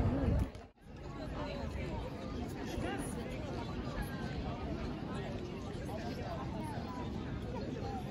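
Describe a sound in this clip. A crowd murmurs softly in the distance outdoors.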